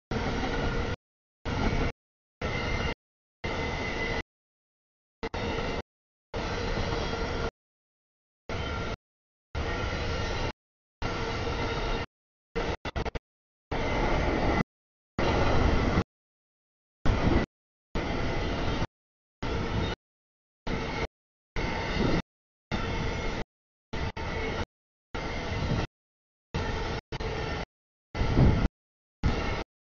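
A long freight train rumbles and clatters past at close range.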